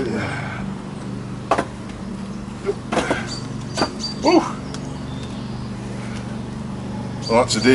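Logs knock and clatter as they are stacked.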